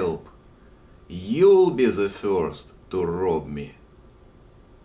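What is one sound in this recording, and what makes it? An elderly man speaks calmly close to the microphone.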